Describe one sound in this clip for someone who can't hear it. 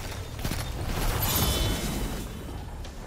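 A video game gun fires at an enemy.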